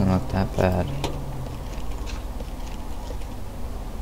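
A car hood creaks open.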